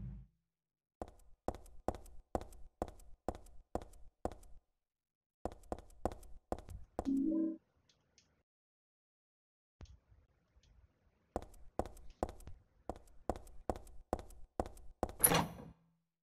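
Footsteps echo on a hard floor at a steady walking pace.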